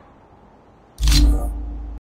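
A knife slashes through the air with a loud whoosh.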